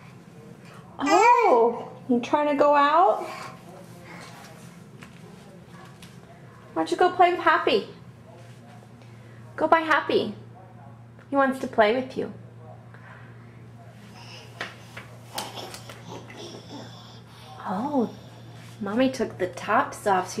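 A baby babbles and squeals loudly nearby.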